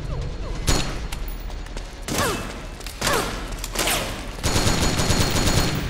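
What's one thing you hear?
Rifle shots crack sharply in bursts.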